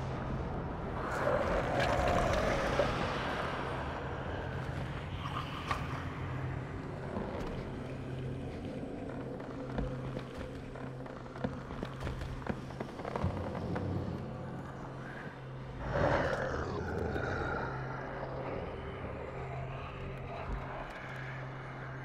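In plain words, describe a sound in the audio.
A large creature growls and snarls close by.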